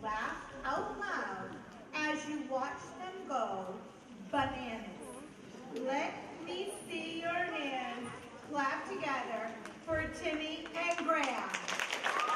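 A woman speaks calmly through a microphone over loudspeakers in a large hall.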